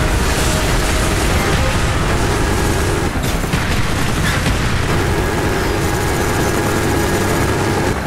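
A machine gun fires in bursts.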